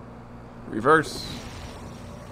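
A magical whoosh bursts out and fades.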